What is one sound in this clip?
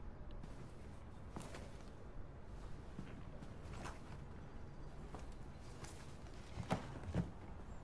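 Records and paper sleeves rustle as they are handled.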